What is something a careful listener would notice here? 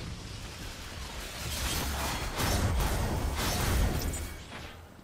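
A game rifle fires with loud bursts and bangs.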